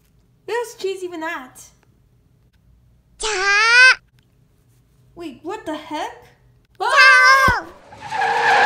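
A high, squeaky cartoon voice speaks in short, excited bursts close by.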